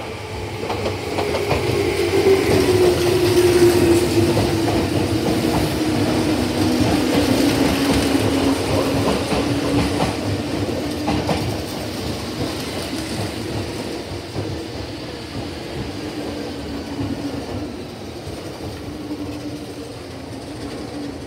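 An electric train's motor whines, falling in pitch as the train slows.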